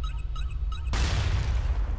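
An explosion bursts with a loud crackle.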